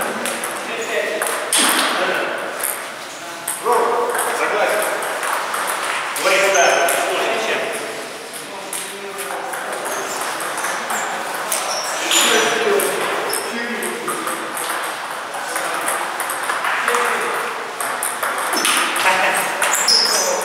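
A table tennis ball clicks off paddles in a rally.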